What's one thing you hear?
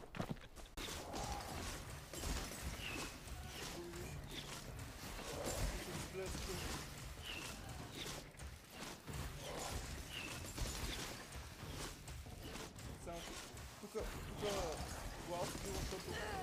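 Weapons clash and whoosh in a game fight.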